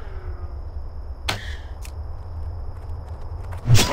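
A weapon strikes with a sharp hit.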